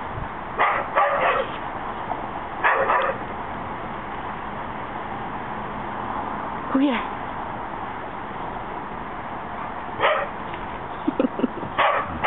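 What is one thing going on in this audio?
Dogs bark in short bursts outdoors.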